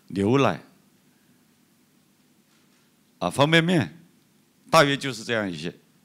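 A middle-aged man speaks calmly into a microphone in short phrases.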